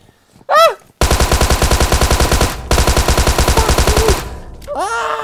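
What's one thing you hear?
A submachine gun fires a long rapid burst.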